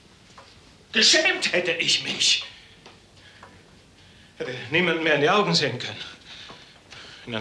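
An elderly man speaks with animation close by, in a room with a slight echo.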